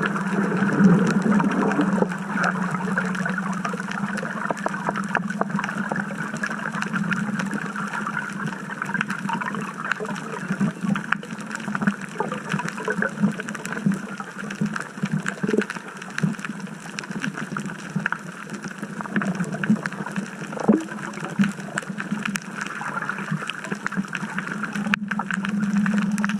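Muffled underwater noise hums and crackles steadily.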